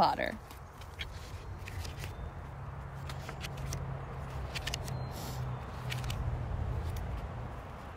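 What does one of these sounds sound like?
Book pages rustle as they turn.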